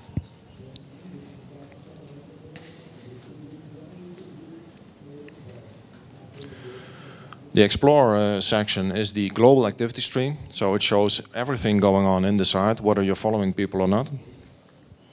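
A man speaks steadily into a microphone, heard over loudspeakers in a large room.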